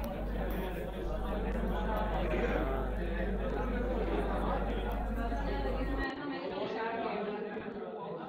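A crowd of men murmurs and chatters nearby.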